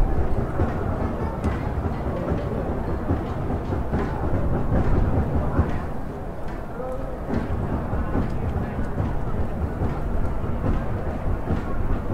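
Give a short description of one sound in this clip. A large stadium crowd chants and roars loudly.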